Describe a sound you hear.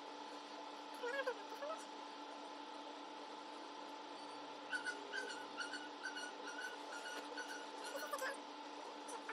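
A cat meows softly nearby.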